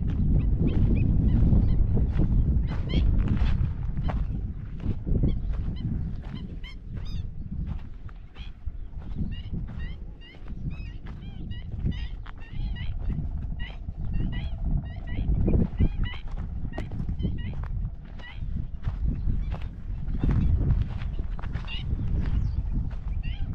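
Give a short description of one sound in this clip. Footsteps crunch steadily on a sandy dirt track.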